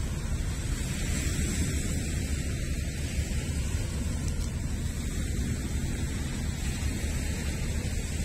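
Small waves lap gently on a pebble shore.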